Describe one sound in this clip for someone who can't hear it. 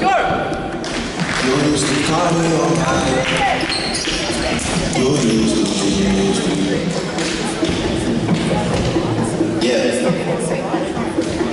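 Young men call out and talk to each other across the hall.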